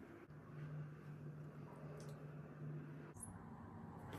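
Foamy lather squelches between rubbing hands.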